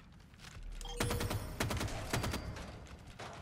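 A rifle fires rapid bursts of shots that echo down a tunnel.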